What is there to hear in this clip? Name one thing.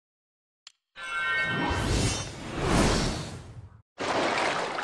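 A magical blast whooshes and rumbles loudly.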